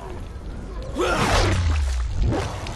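A creature shrieks loudly.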